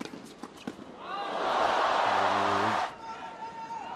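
A crowd applauds and cheers loudly in a large arena.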